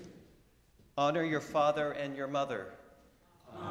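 An elderly man reads out a line aloud through a microphone.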